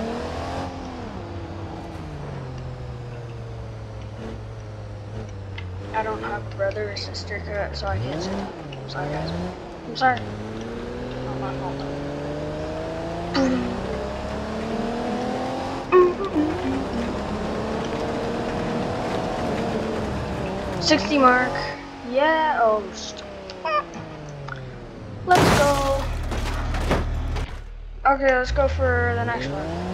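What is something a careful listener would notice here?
An engine revs up and down as a vehicle drives.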